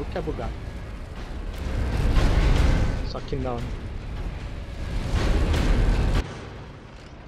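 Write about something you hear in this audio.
A heavy stone lift rumbles deeply as it rises.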